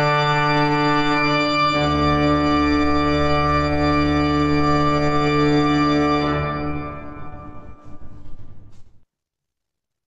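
A pipe organ plays loud sustained chords that fade out.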